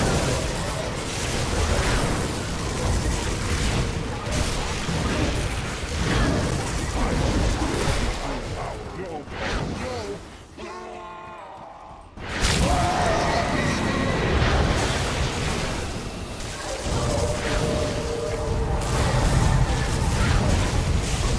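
Magic spells crackle and explode in a rapid, chaotic video game battle.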